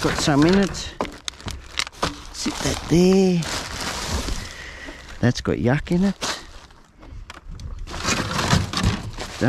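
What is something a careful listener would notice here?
Plastic bags crinkle and rustle as rubbish is handled.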